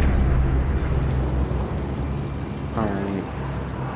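A large aircraft's engines drone loudly overhead.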